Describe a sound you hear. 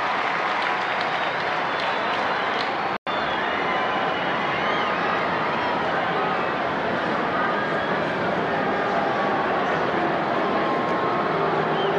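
A marching band plays a sustained chord.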